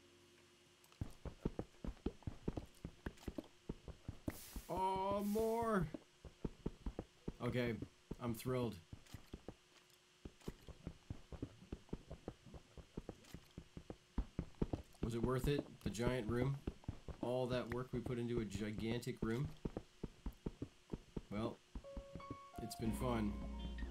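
Pickaxe blows chip rapidly at stone blocks in a game.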